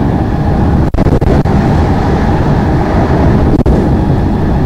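A passing train rushes by close alongside.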